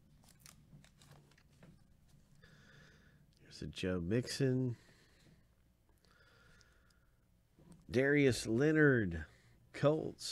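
Trading cards slide and rustle against each other.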